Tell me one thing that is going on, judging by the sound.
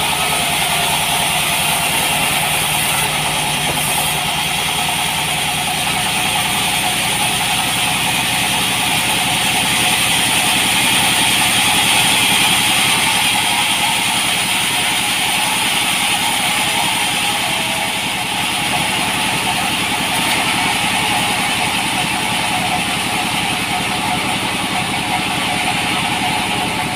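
A sawmill blade whines steadily as it cuts through a log.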